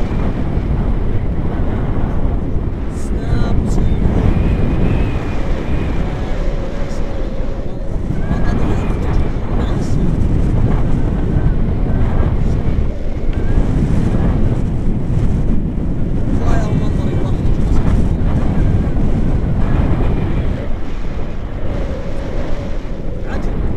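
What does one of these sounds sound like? Wind rushes and buffets the microphone during a paragliding flight.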